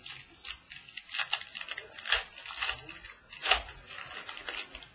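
Packaging crinkles and rustles in hands.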